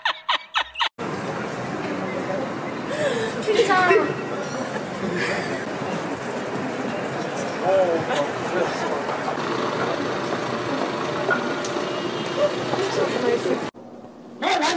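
Passersby murmur and chatter outdoors on a busy street.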